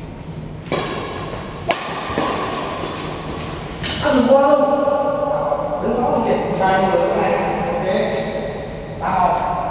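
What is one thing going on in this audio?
Shoes squeak and patter on a court floor.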